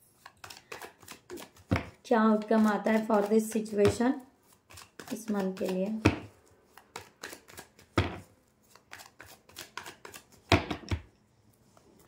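Cards riffle and slap as they are shuffled.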